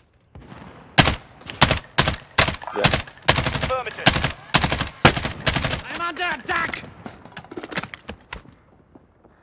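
Rapid gunshots fire in bursts close by.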